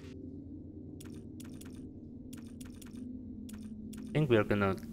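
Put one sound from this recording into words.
Short, soft menu clicks tick several times.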